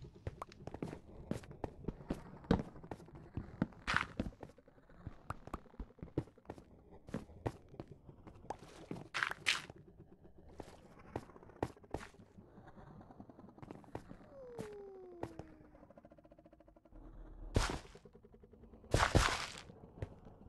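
Game blocks are dug and placed with short crunching taps.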